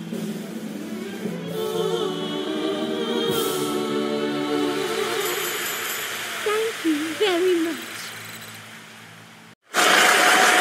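Upbeat game music plays with a bright melody.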